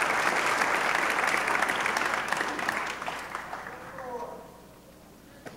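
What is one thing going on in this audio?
A large audience claps and cheers in an echoing hall, then the applause fades.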